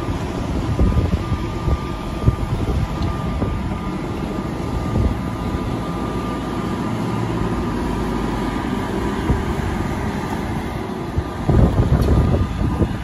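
A loader's diesel engine rumbles steadily close by.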